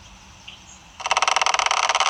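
A rapid pulsing electronic game sound plays loudly.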